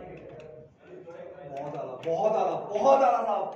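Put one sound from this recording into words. A man talks loudly nearby.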